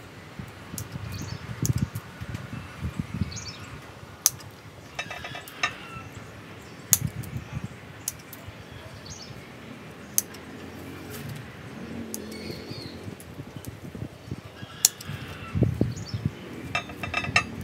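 Leaves rustle as branches are handled.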